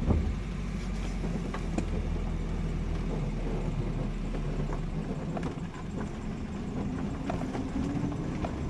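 A vehicle engine hums steadily from inside a car.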